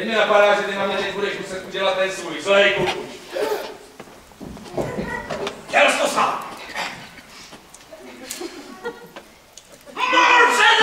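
A man speaks theatrically on a stage, heard in a large hall.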